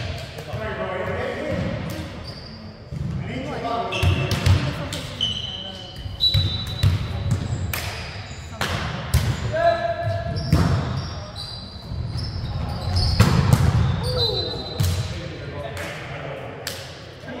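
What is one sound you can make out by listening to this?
A volleyball thuds off players' hands and arms.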